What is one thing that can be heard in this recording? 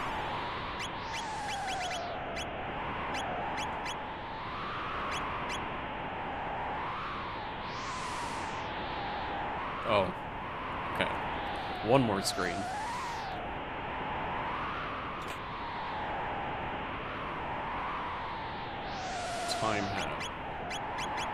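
Gentle video game music plays steadily.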